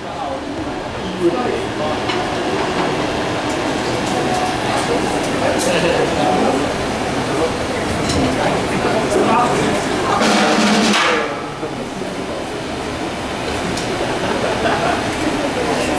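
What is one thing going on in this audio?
Drums and cymbals are struck in a steady beat.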